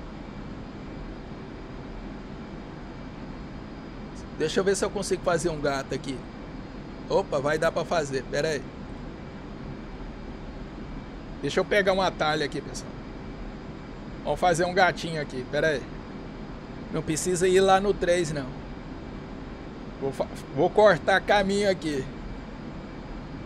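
A jet fighter's engines drone steadily in flight, heard from the cockpit.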